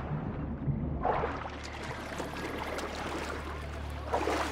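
Water sloshes as a swimmer paddles.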